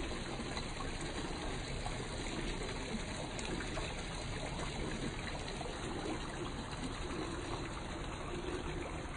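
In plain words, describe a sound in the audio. Water trickles and splashes steadily down a small fountain.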